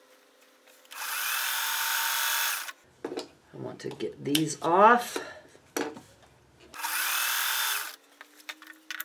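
A sewing machine runs in short bursts, whirring steadily.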